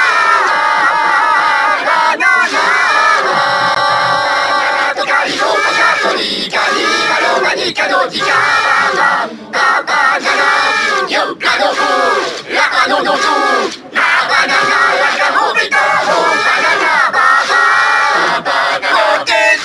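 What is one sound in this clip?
Small cartoon characters sing together in high, squeaky voices.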